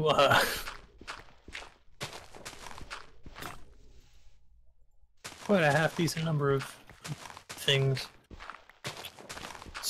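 A shovel digs into dirt with repeated crunching thuds.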